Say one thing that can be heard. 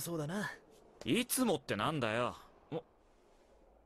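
A second young man asks a question with surprise.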